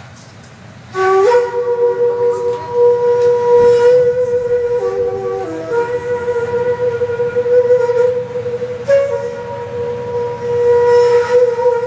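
A bamboo flute plays a slow, sustained melody through loudspeakers.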